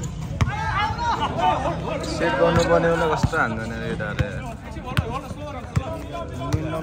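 A basketball bounces sharply on a hard outdoor court.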